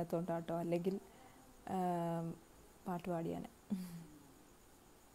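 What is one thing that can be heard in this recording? A young woman speaks calmly and close into a microphone, in short phrases.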